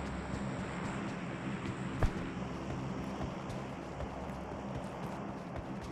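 Footsteps thud quickly as someone runs over dirt.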